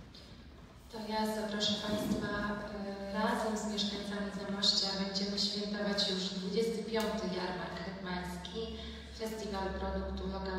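A young woman speaks calmly into a microphone, heard through loudspeakers in an echoing hall.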